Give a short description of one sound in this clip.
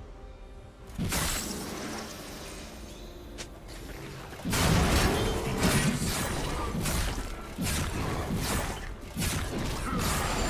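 Video game spell effects whoosh and clash during a fight.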